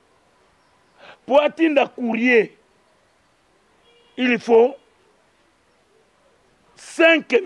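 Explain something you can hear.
A man reads aloud into a close microphone, in short bursts with pauses.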